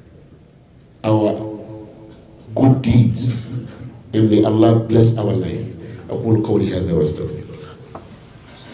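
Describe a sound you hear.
A man preaches passionately into a microphone, his voice echoing through a loudspeaker.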